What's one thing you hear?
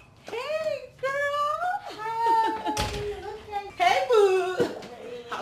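A young woman answers with animation and laughs.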